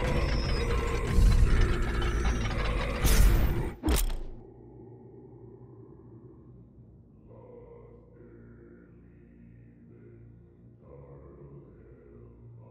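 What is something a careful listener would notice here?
A deep, rumbling game soundtrack plays loudly, then drops to a quiet, low drone.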